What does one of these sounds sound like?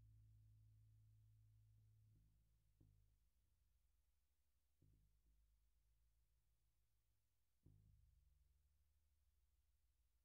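A bass guitar plays low notes, each plucked and slowly ringing out.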